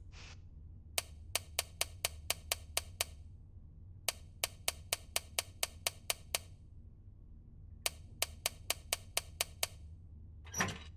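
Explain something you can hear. A safe's combination dial clicks rapidly as it turns.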